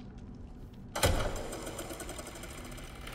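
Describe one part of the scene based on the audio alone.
A film projector clatters and whirs.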